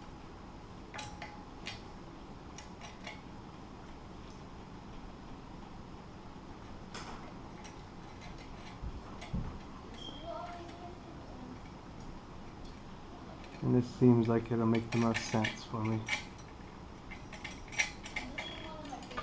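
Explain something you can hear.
Metal parts click and clink as they are handled.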